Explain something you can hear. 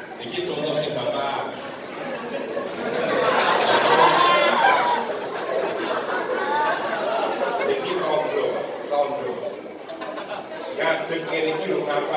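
A man preaches with animation through a microphone and loudspeakers.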